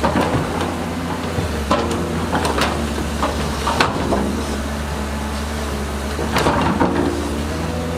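Rocks and earth clatter and knock as an excavator bucket digs.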